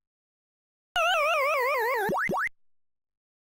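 An arcade game's falling, wobbling tune plays, ending in two short rising sweeps.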